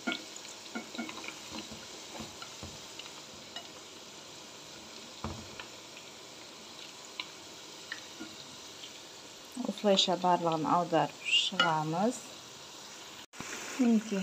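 A metal utensil clinks against a pan.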